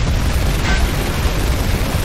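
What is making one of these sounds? A building collapses with a deep, heavy rumble.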